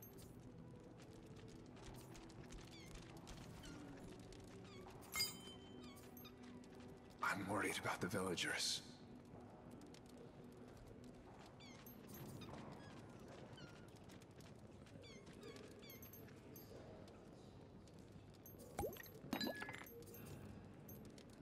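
A young woman speaks quietly into a close microphone.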